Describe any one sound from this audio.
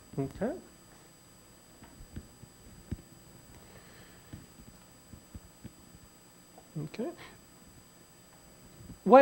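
A man speaks calmly into a microphone, in short bursts between pauses.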